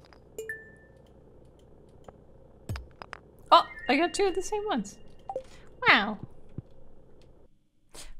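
Short game sound effects chime and click.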